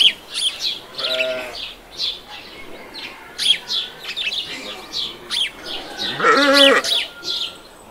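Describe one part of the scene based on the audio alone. A chicken clucks and squawks nearby.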